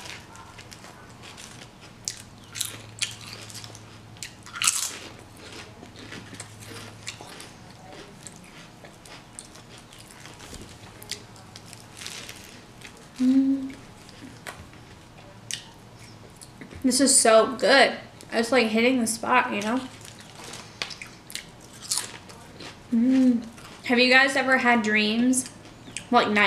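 A young woman chews and crunches food close by.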